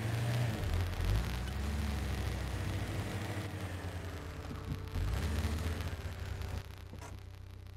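Tyres crunch over rocks and dirt.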